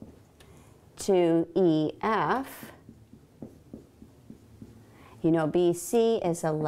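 A woman speaks clearly and calmly nearby.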